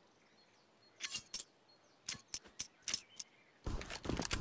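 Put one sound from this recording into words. A knife swishes through the air.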